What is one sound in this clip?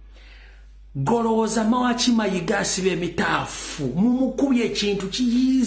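A man speaks loudly and forcefully, close to a microphone.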